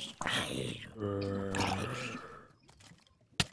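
A zombie groans low and drawn out.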